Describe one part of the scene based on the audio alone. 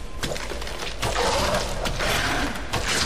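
A blade stabs wetly into flesh.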